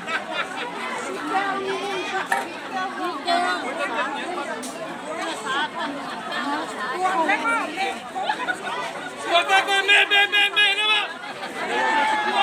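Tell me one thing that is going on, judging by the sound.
A group of men and women chat and talk over one another nearby, outdoors.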